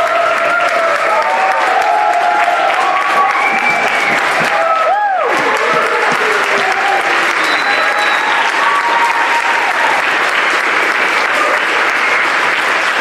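A man speaks loudly on a stage in a large hall.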